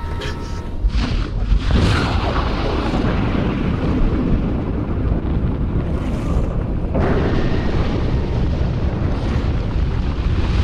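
A deep rumbling roar swells and fades.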